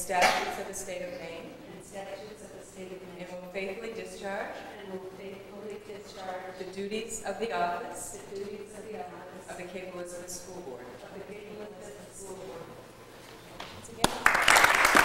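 A woman speaks calmly in a large room.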